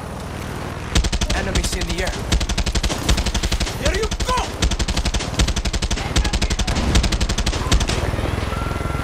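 A helicopter's rotor thumps rapidly overhead.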